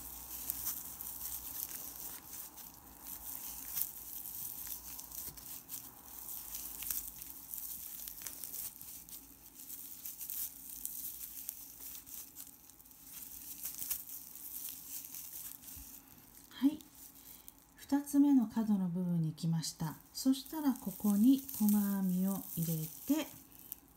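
A crochet hook softly rustles and scrapes through yarn.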